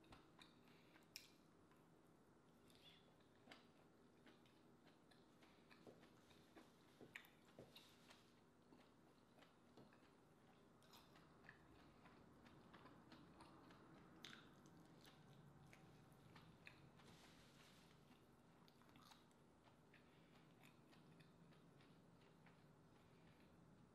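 A young woman chews and smacks her lips close to the microphone.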